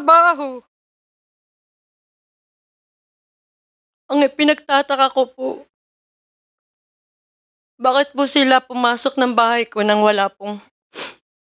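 A middle-aged woman speaks emotionally into a microphone, in short bursts with pauses.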